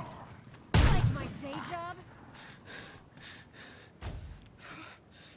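A gun fires loud, booming shots.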